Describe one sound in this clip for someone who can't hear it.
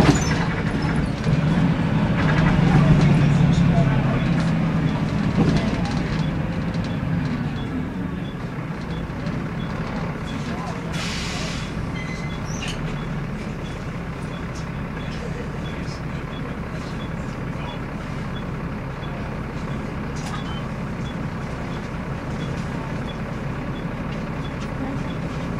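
The diesel engine of a single-deck bus drones, heard from inside.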